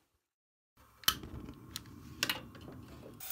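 A gas stove igniter clicks sharply.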